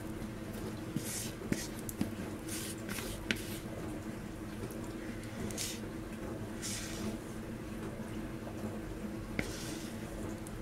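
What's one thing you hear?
A spatula scrapes thick icing from a plastic bowl.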